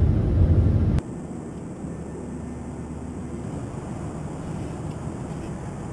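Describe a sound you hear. A steady airliner cabin hum drones.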